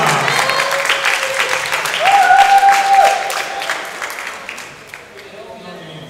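A crowd applauds and cheers in a large hall.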